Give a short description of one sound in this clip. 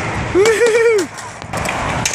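A skateboard clatters onto the ground.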